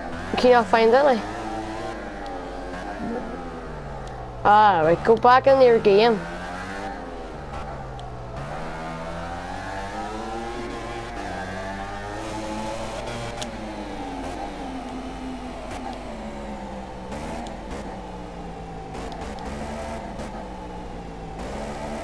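A motorcycle engine roars and rises and falls in pitch as it shifts gears.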